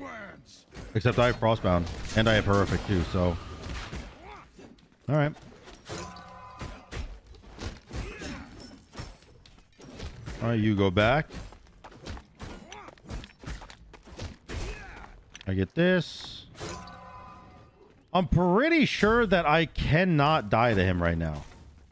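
Video game sword swipes and magic effects sound in bursts.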